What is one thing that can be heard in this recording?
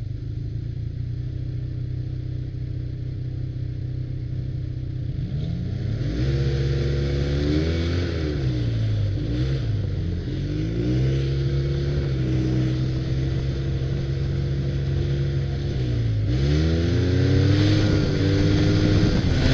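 A snowmobile engine drones up close, revving up and down as it speeds along.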